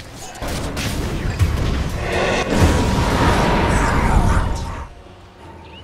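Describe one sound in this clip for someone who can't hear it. Fiery meteors crash down with loud rumbling explosions.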